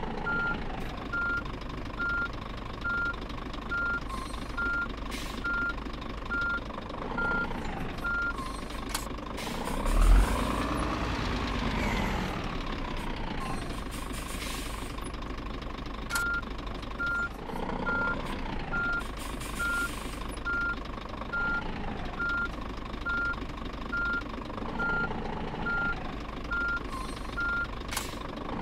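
A diesel truck engine idles.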